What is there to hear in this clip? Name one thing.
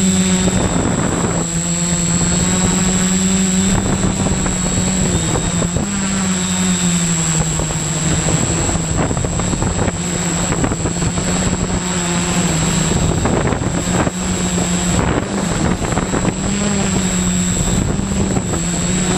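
Drone propellers whir with a steady, loud buzz that shifts slightly in pitch.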